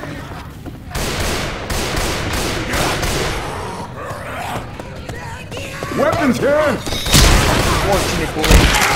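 Gunshots blast loudly in quick bursts.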